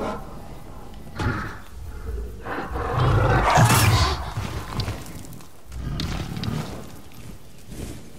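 Light footsteps patter on stone.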